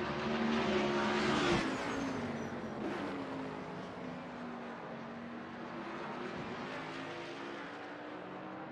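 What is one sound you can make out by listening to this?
A race car engine roars loudly as it passes by and fades into the distance.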